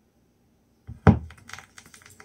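A stylus drops onto a record with a thump.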